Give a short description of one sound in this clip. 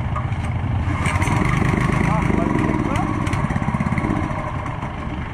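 A small petrol engine revs up loudly for a few seconds, then settles.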